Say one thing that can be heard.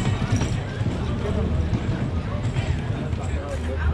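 A crowd of people chatter at a distance outdoors.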